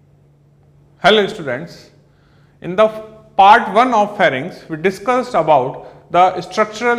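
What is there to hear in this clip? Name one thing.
A man speaks calmly and clearly into a close microphone, as if lecturing.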